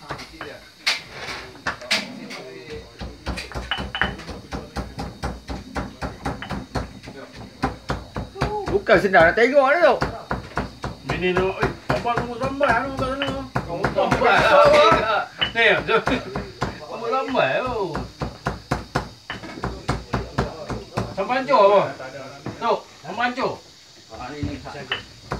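A pestle pounds rhythmically in a stone mortar.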